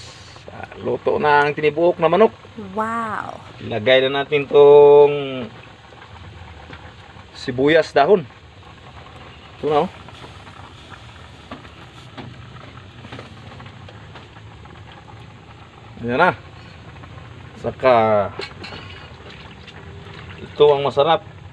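A wood fire crackles under a pot.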